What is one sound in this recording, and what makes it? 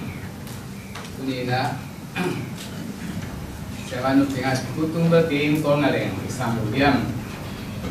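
A younger man speaks calmly into a microphone.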